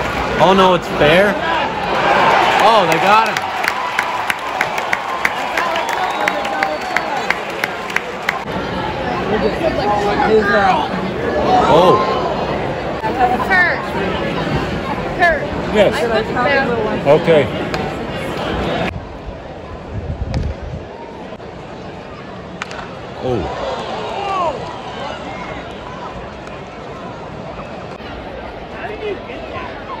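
A large crowd murmurs and chatters in an open-air stadium.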